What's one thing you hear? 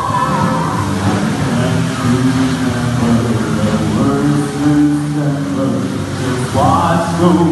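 A large crowd sings together in a big echoing hall.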